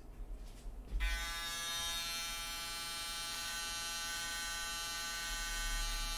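Hair clippers buzz steadily.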